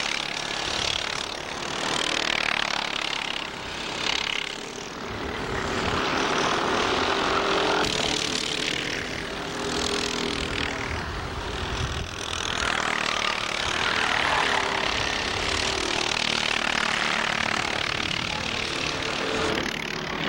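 Kart engines buzz and whine loudly as karts race past.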